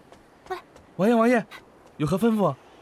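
A man answers in a deferential voice, close by.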